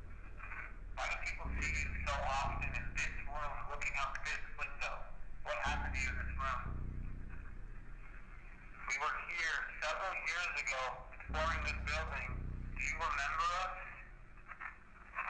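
A young man talks in a hushed, tense voice, heard from a played-back recording.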